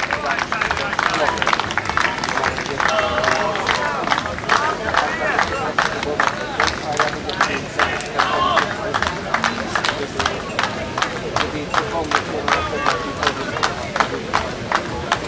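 A crowd claps steadily in rhythm outdoors.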